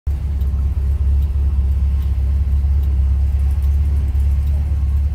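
A road roller's diesel engine rumbles steadily nearby.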